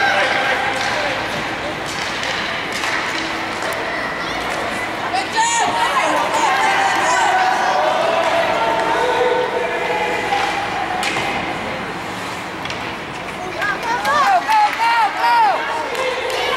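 A crowd of spectators chatters and calls out.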